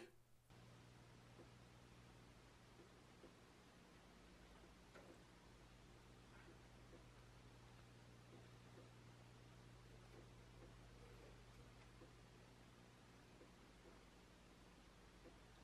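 A mouse gnaws on a corn cob with soft, quick nibbling clicks.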